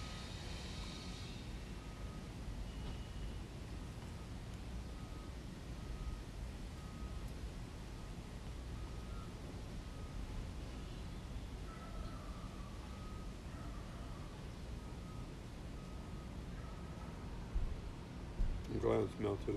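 A spoon scrapes inside a paper cup.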